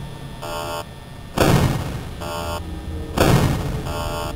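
A metal door slams shut with a sharp bang.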